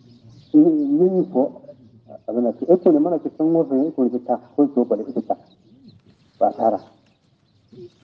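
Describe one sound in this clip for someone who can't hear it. An elderly man chants in a melodic voice, close to a microphone.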